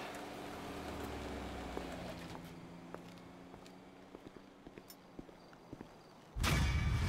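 Footsteps tap on a hard path at an even pace.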